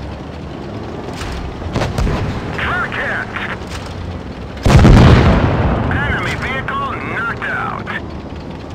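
Tank engines rumble low and steadily.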